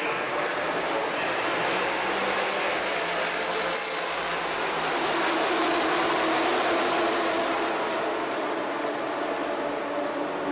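Racing cars roar past on a track, rising and then fading.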